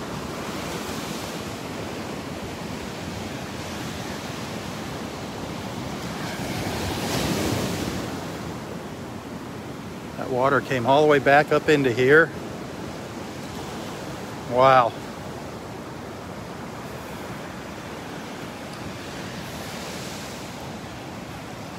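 Waves wash gently onto a beach.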